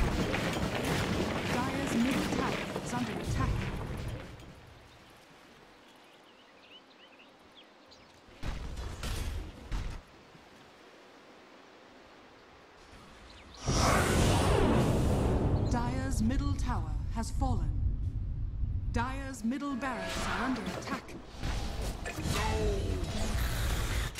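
Fantasy combat sounds clash and crackle with magic blasts.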